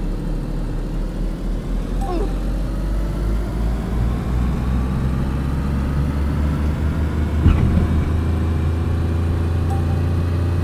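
A car engine drones steadily and slowly climbs as the car speeds up.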